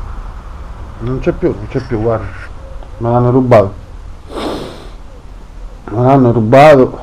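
A man talks close by in a lively voice.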